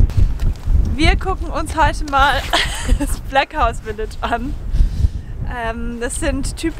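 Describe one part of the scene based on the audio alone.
A young woman talks cheerfully up close.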